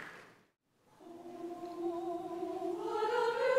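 A choir sings softly in a large, echoing hall.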